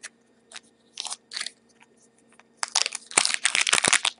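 A foil wrapper crinkles as hands handle it.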